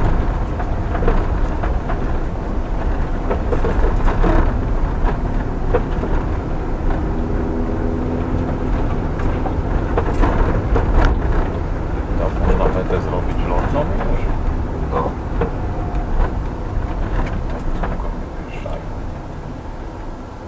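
Tyres crunch and bump over a rough dirt track.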